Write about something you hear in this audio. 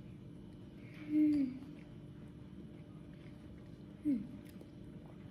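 A young girl hums with her mouth full.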